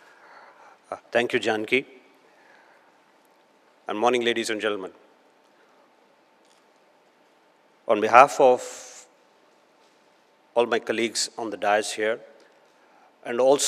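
A middle-aged man speaks calmly through a microphone, with pauses between phrases.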